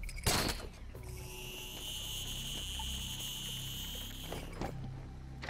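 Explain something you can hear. A grappling line whirs steadily as it reels in.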